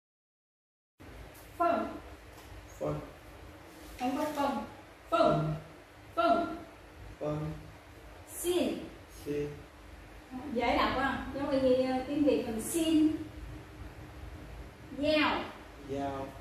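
A woman speaks clearly and slowly, as if teaching, close by.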